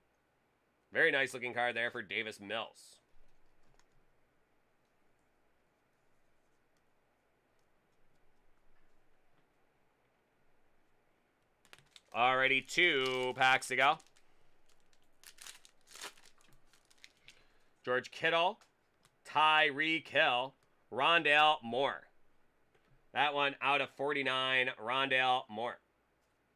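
Plastic card holders click and rustle in hands.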